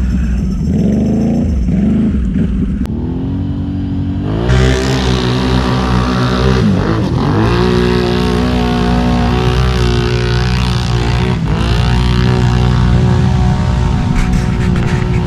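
An all-terrain vehicle's engine roars and revs up close.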